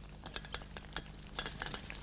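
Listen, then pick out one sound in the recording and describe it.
Dishes clink on a table.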